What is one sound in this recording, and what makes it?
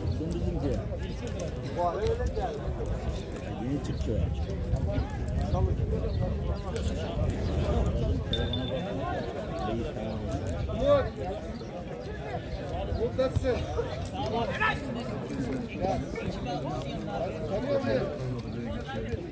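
Young men shout to each other in the distance outdoors.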